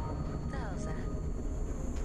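A young woman asks a question, close by.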